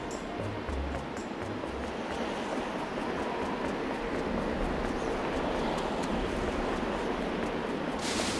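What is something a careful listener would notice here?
Light footsteps patter quickly along a dirt path.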